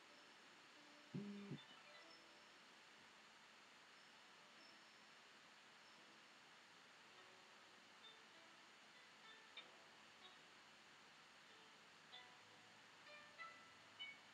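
A brush taps and strokes softly on paper.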